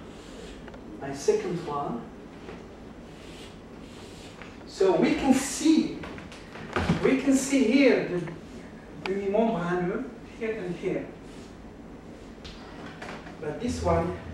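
A middle-aged man talks calmly, close by.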